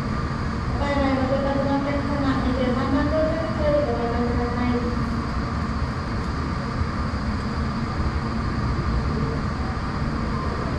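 A parked jet airliner hums steadily outside.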